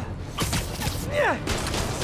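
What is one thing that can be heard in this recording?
Debris crashes and scatters.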